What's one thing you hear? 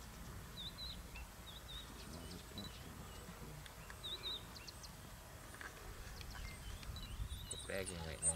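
Paws pad softly on sandy ground.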